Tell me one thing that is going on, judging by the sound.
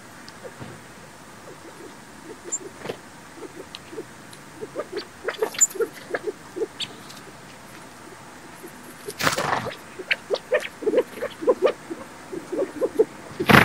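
Small birds peck and scratch at snow, with soft taps.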